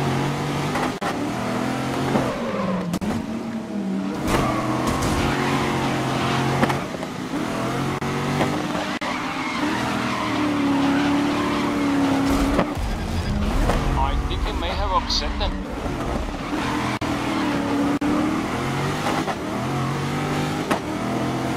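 A race car engine roars and revs up and down as gears shift.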